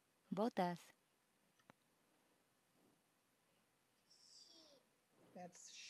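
A woman speaks through an online call, in short bursts with pauses.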